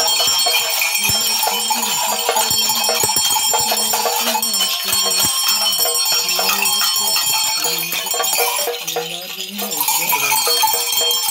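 Seed rattles shake and clatter steadily.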